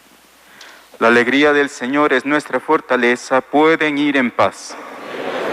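A man sings a chant in a large echoing hall.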